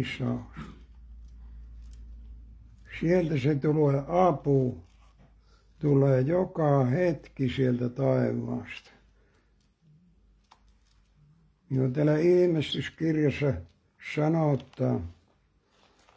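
An elderly man reads out slowly into a microphone, close by, with pauses between phrases.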